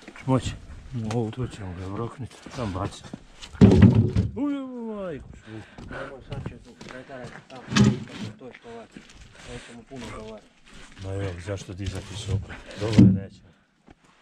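Heavy wooden logs knock and thud as they are shifted.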